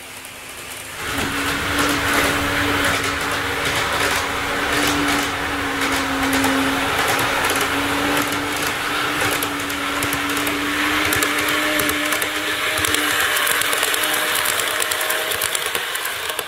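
A model electric train rolls along the track with a motor whine.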